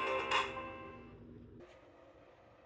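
A toy bus plays a short electronic tune.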